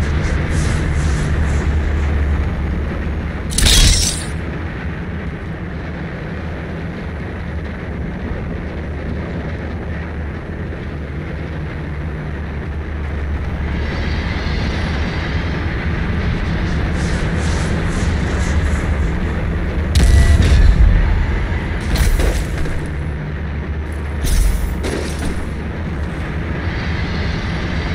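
A deep, steady game drone hums throughout.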